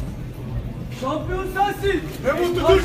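A man speaks loudly and with animation through a loudspeaker.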